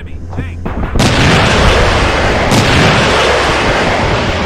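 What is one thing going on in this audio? A missile launches with a loud rushing whoosh.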